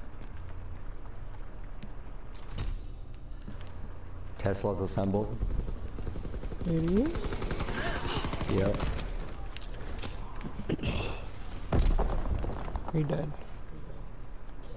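A gun fires in short, sharp shots.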